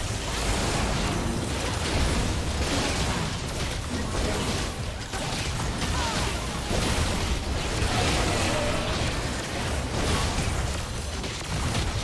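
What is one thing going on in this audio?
Magical blasts crackle and boom in a fast battle.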